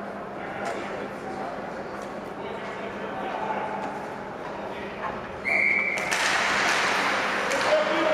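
Spectators murmur and chat nearby.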